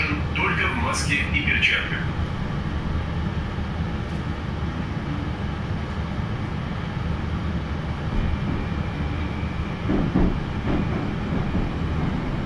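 A train rumbles steadily as it pulls out of a station.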